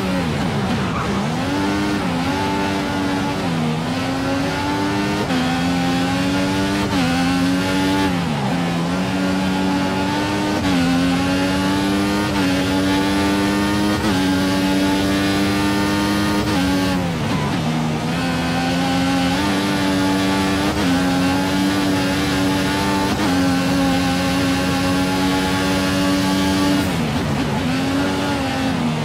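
A racing car engine screams, rising through the gears and dropping sharply when braking for corners.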